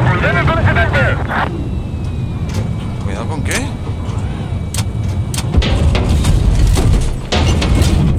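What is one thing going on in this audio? Gunshots and blasts crack sharply, on and off.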